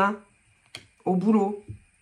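Playing cards shuffle and flick.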